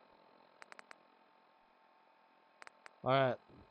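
Soft menu clicks tick a few times.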